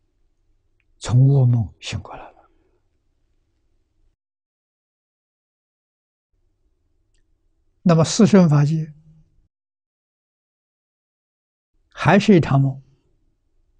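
An elderly man speaks calmly through a microphone, in short phrases with long pauses.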